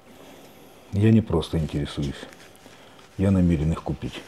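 An older man answers in a low, calm voice.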